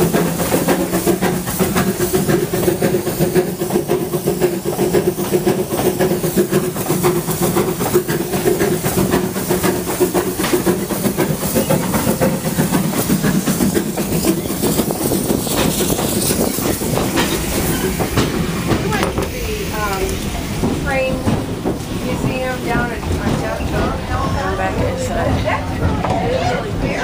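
A steam train rumbles and rattles along steadily.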